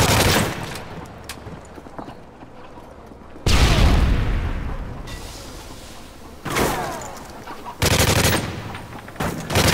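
Gunshots boom in short bursts and echo off walls.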